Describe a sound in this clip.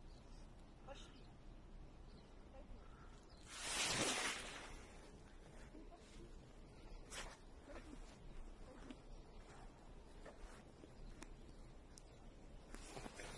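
Footsteps crunch slowly through snow close by.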